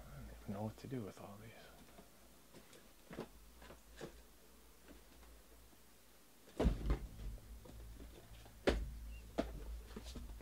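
Cardboard boxes knock and rustle as hands shift them.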